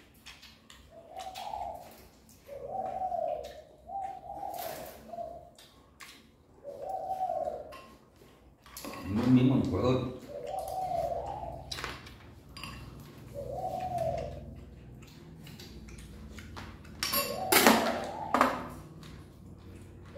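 Cutlery clinks against dishes.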